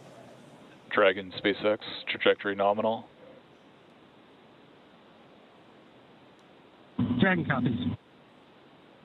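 A man speaks briefly over a crackly radio link.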